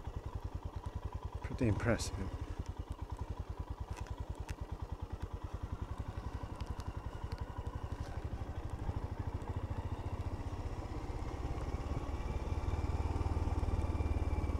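A motorcycle engine thumps steadily at low speed, growing a little louder toward the end.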